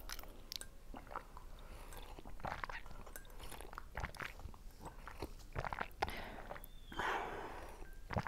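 Two women sip and slurp a drink close to a microphone.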